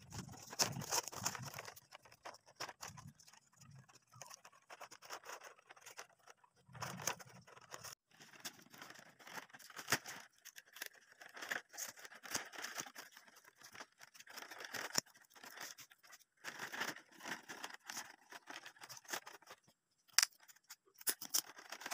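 Dry palm strips rustle and crackle as hands weave them.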